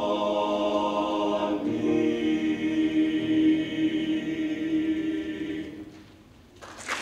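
A piano plays along with a choir.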